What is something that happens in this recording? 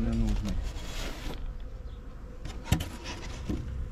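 A wooden hive lid scrapes and knocks as it is lifted.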